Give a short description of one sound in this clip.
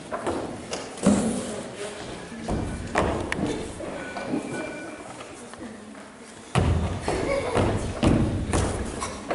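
Footsteps thud on a wooden stage floor.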